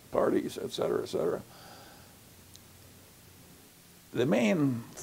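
An elderly man speaks calmly and thoughtfully through a close microphone, with pauses.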